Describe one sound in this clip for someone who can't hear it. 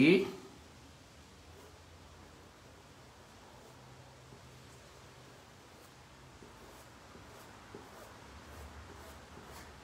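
A paintbrush softly dabs and brushes paint onto cloth.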